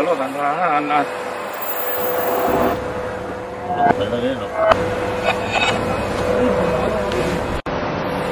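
A metal frame clatters and knocks as it is lifted from the floor.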